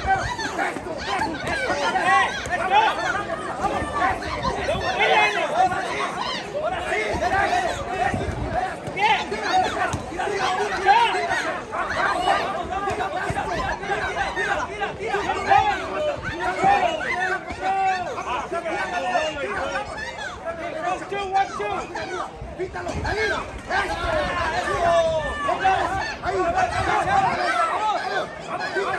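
A crowd of spectators chatters and cheers loudly outdoors.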